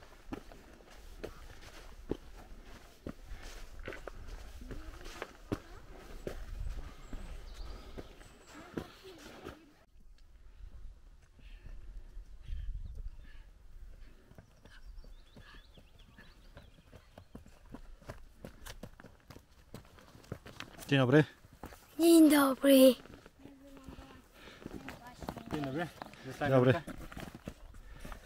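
Footsteps crunch on a stony path.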